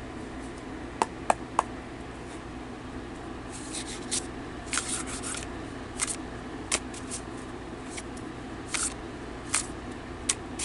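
A deck of tarot cards is shuffled by hand.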